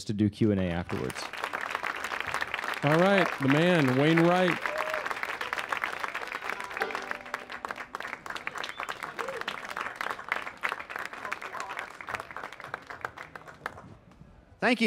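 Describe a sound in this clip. An audience claps and cheers in a hall.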